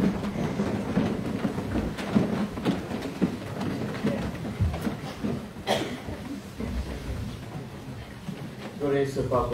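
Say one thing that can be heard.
A crowd murmurs and shuffles in a large echoing hall.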